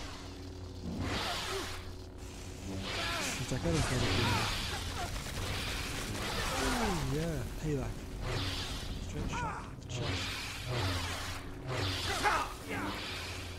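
Blades clash with sharp crackling hits.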